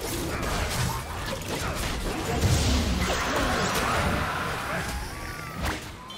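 A large winged beast shrieks and roars as it is slain.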